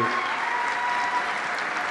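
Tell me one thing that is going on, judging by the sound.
A large crowd applauds in a big hall.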